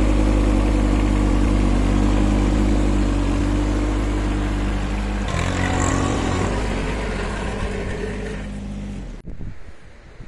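A small tractor engine runs steadily up close.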